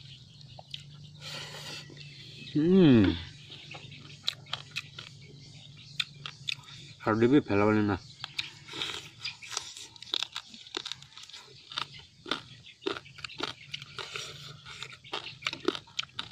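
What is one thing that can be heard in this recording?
A young man chews and smacks his lips while eating.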